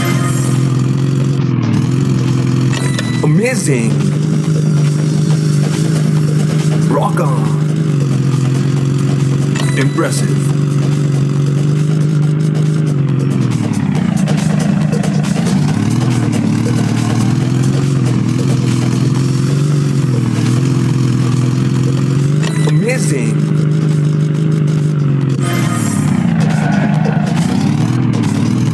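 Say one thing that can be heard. A truck engine roars steadily, its pitch dipping and rising as it slows and speeds up.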